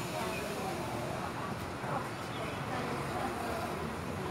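Motorbikes pass by on the street.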